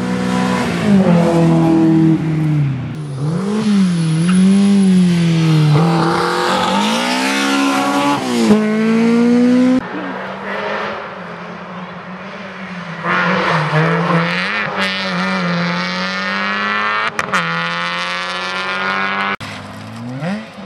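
Rally car engines roar at full throttle, rising and dropping in pitch through gear changes as the cars race past.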